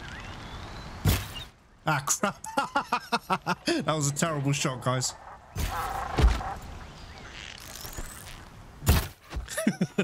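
A bowstring twangs sharply as arrows are loosed.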